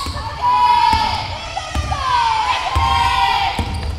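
A basketball bounces on a hard floor as a player dribbles.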